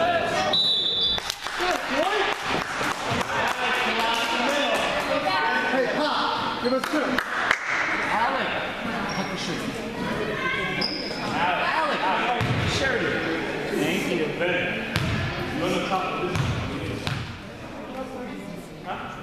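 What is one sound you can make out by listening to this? Spectators chatter and call out, echoing in a large hall.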